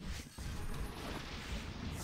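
A lightning bolt cracks sharply.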